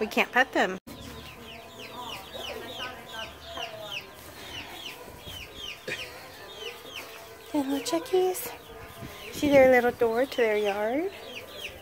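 Chicks peep rapidly in high chirps.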